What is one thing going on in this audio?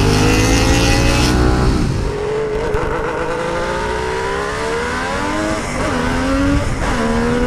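A motorcycle engine hums close by, its pitch slowly rising and then dropping with each gear change.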